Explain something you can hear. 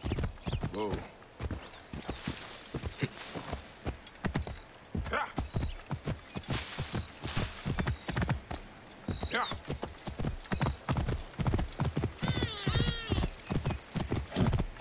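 Horse hooves clop steadily on rocky ground.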